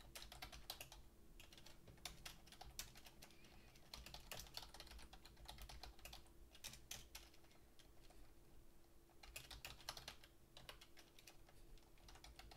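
Keys on a keyboard click rapidly in bursts of typing.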